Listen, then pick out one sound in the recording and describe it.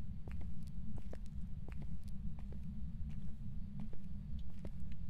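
A low rumbling drone hums steadily.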